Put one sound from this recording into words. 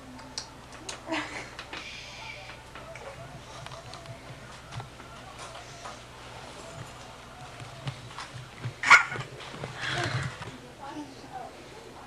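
A young woman talks playfully close by.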